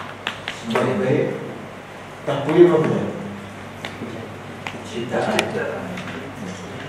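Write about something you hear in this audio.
A man speaks in a calm, lecturing voice through a microphone.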